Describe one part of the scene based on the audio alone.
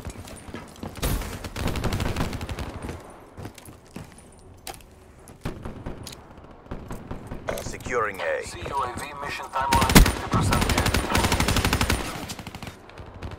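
An automatic gun fires rapid bursts.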